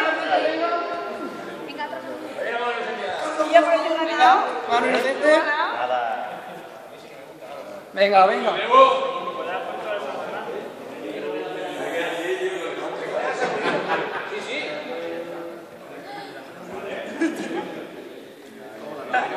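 Young men and women talk and laugh together in a large echoing hall.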